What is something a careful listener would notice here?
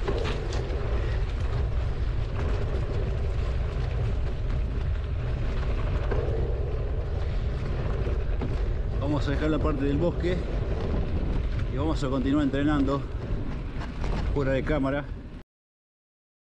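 Wind rumbles and buffets the microphone outdoors.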